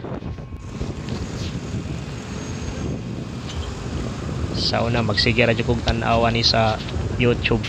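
A motorcycle engine hums close by.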